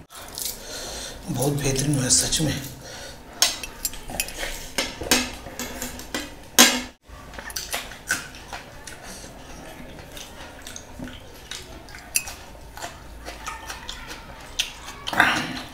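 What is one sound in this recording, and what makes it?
Fingers squelch through soft rice and curry.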